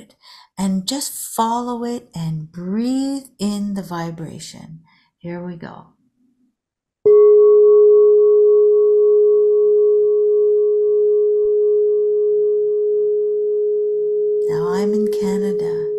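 An older woman speaks calmly through an online call.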